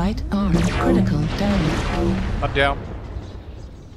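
Laser weapons fire in loud crackling bursts.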